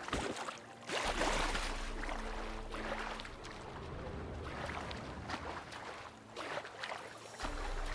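Water splashes steadily as someone swims.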